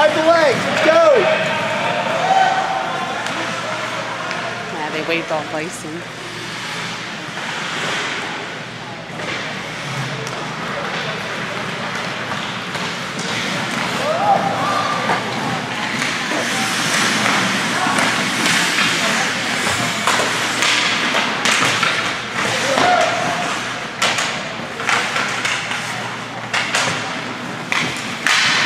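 Hockey sticks clack against a puck and the boards in a large echoing rink.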